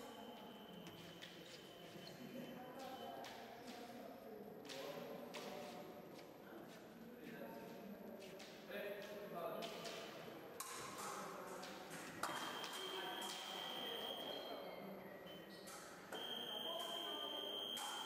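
An electronic scoring buzzer beeps steadily.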